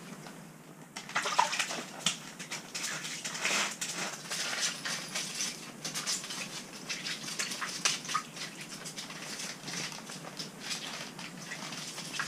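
A man scrapes and scoops slushy ice from a hole.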